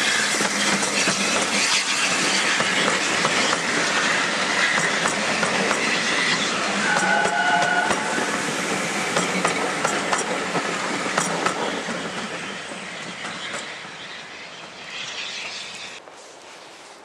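Railway carriages rumble and clatter loudly along the track close by, then fade into the distance.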